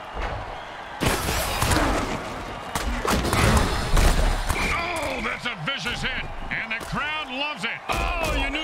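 Armoured players crash together with heavy thuds.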